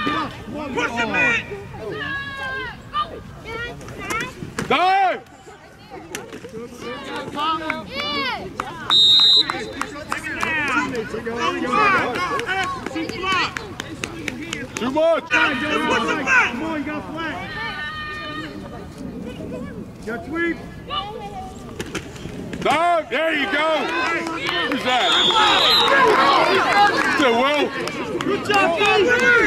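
A crowd of adults shouts and cheers outdoors.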